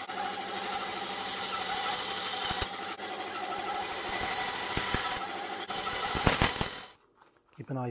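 A band saw whines loudly as it cuts through metal.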